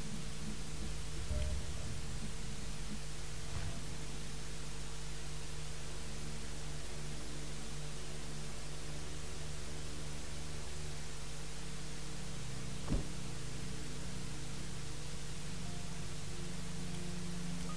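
A plane's engines drone steadily in the cabin.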